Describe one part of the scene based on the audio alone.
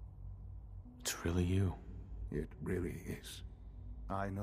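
A younger man speaks briefly in reply.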